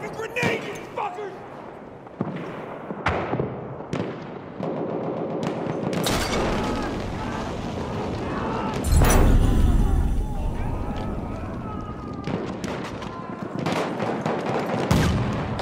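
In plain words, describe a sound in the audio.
Pistol shots crack loudly, one after another.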